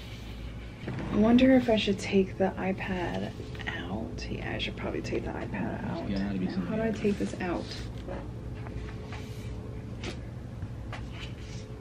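A tablet case taps and knocks as it is picked up and moved.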